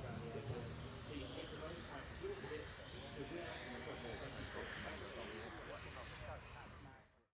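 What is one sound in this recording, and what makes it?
A jet engine roars loudly as a fighter jet takes off into the distance.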